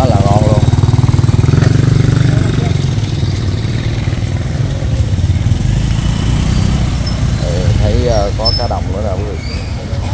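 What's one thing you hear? Motorbike engines idle and pass close by.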